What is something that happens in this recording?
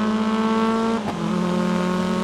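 A racing car engine shifts up a gear with a sudden drop in pitch.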